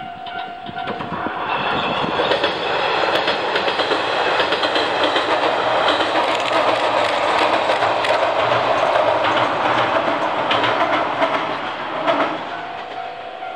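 A train rumbles and clatters loudly across a bridge, then fades away.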